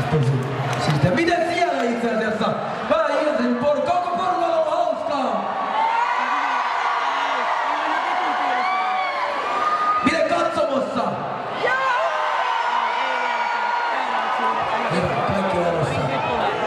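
A young man sings loudly into a microphone, heard through loudspeakers in a large echoing hall.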